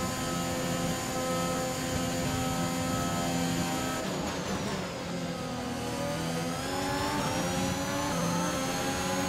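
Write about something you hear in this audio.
A racing car engine screams at high revs, drops in pitch as it slows into a corner, then climbs again.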